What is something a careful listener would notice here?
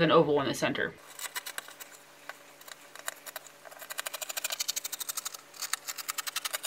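Scissors snip through fabric in quick, rhythmic cuts.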